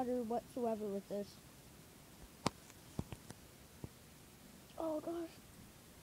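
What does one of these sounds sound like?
A young girl speaks close to the microphone in a high, sing-song voice.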